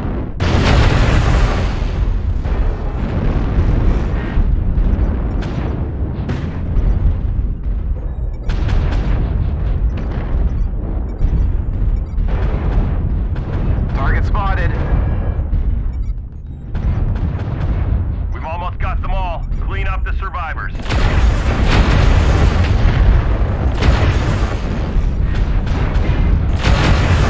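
Explosions boom and crackle close by.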